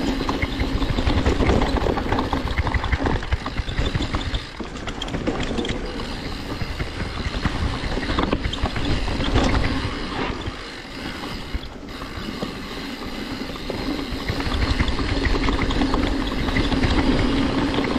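Bike tyres roll and crunch over dry leaves and dirt.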